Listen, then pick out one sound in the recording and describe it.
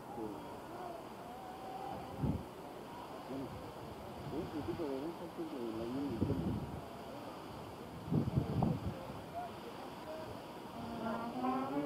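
A crowd of men and women talk and call out outdoors.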